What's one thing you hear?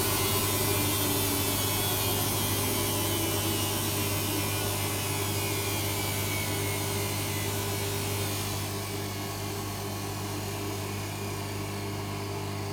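A washing machine hums steadily.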